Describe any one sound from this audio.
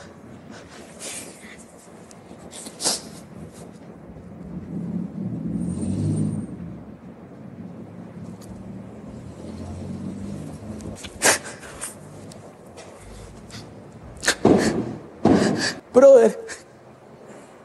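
A young man sobs and sniffles.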